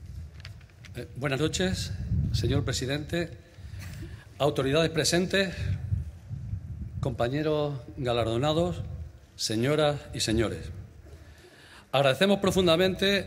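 A middle-aged man speaks calmly into a microphone, heard through loudspeakers with echo.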